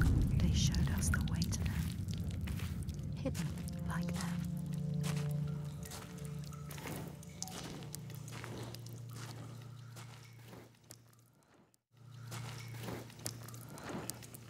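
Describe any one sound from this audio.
Footsteps crunch on a rocky floor.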